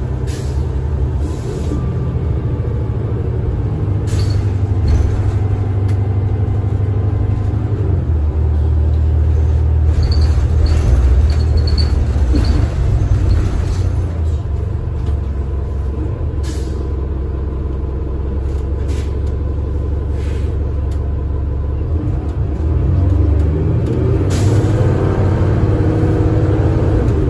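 A bus engine idles with a steady low rumble close by.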